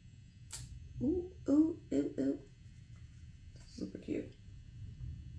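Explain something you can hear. A young woman speaks briefly and calmly, close to a microphone.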